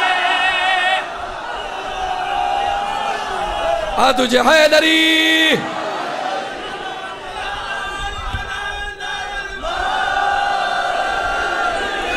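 A crowd of men chants loudly together in an echoing hall.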